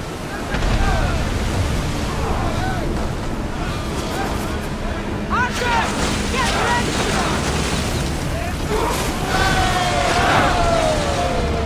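Waves rush and splash against a ship's hull.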